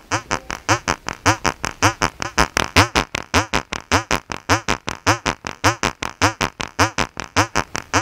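An electronic drum thumps in a steady beat.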